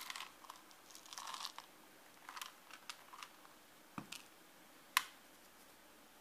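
Dry granules crumble and patter down from fingers.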